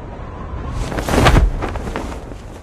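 A parachute snaps open with a loud flap.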